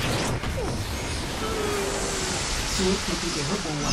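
A smoke cloud hisses as it spreads.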